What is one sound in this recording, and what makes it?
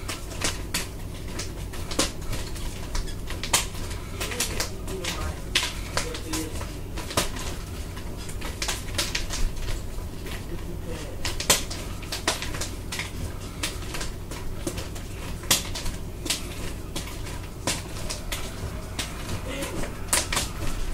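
Nunchucks clack as they are swung around.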